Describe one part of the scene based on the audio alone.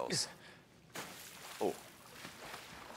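Water splashes as a body plunges in.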